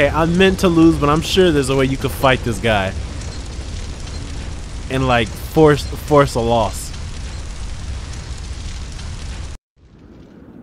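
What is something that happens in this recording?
A large fire roars steadily.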